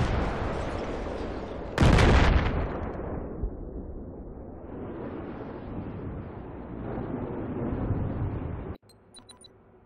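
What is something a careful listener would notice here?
Ocean waves wash and rumble.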